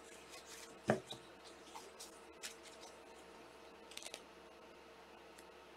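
Cards rustle and slide against each other.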